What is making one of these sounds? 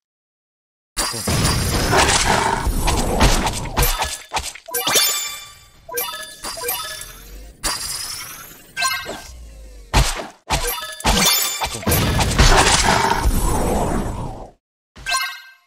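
Game attack effects whoosh and crash in loud bursts.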